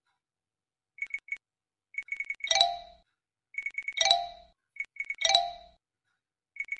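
Short bright chimes ring one after another.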